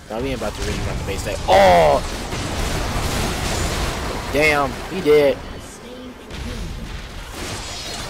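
A young man talks with excitement into a close microphone.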